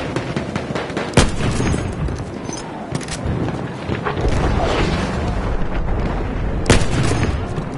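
Rifle shots crack loudly and echo.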